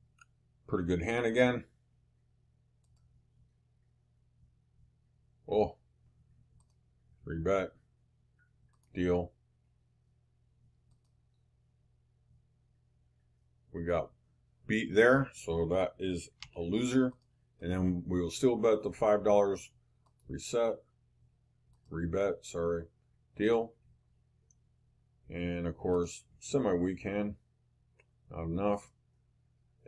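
A middle-aged man talks calmly and close to a microphone, in short bursts with pauses.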